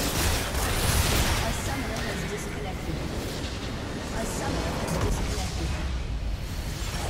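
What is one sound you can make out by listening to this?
Game spell effects crackle and explode during a battle.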